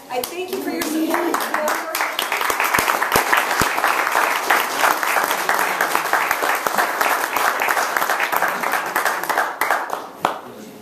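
A room of people applauds loudly.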